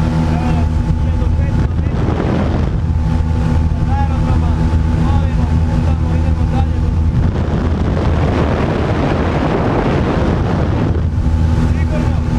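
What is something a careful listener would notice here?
Wind rushes past an open aircraft door.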